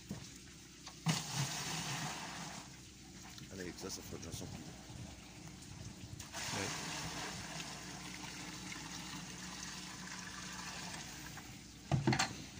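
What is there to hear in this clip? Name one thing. Water pours and splashes into a plastic bin.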